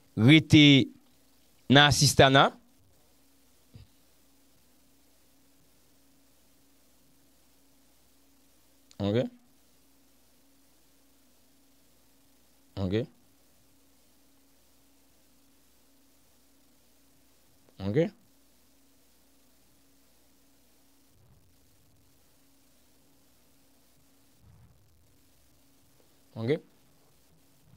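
A man speaks in short, calm phrases close to a microphone, with long pauses between them.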